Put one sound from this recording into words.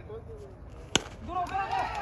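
A bat strikes a ball with a sharp crack.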